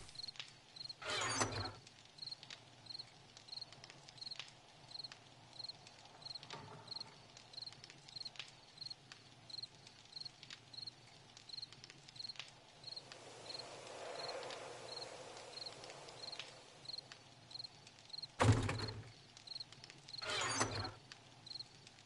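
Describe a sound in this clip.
A game menu opens and closes with short whooshing sounds.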